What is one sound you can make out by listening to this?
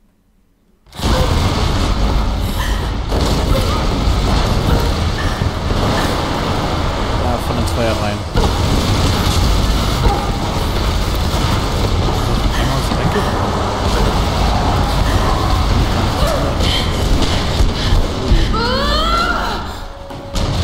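Heavy wooden beams creak and crash down with a deep rumble.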